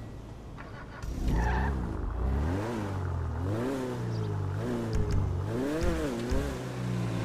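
A sports car engine revs hard as the car pulls away.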